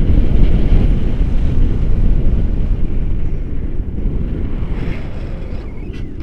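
Wind rushes and buffets over a microphone in flight.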